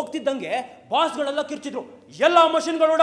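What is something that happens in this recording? A young man calls out loudly and theatrically.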